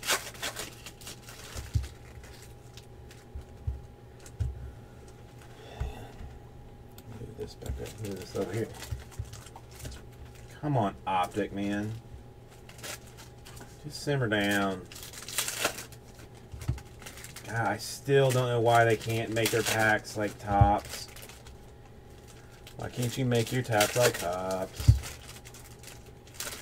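Foil card packs crinkle and rustle as they are handled and torn open.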